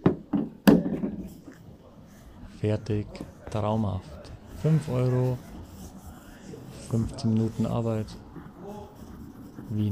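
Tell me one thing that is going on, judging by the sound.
A cloth wipes over a car's badge and bodywork.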